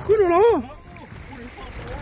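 A rock splashes into shallow water.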